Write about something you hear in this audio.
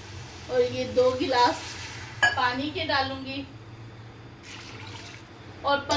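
Water pours and splashes into a metal pot.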